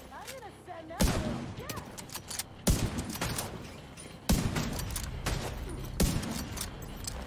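Rifle shots crack loudly, one after another.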